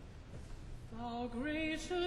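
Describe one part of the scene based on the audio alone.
A large choir of men begins to sing together in a reverberant hall.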